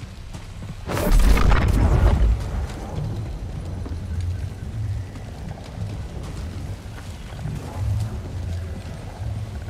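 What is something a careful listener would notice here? A loud low rumble of rushing wind roars steadily.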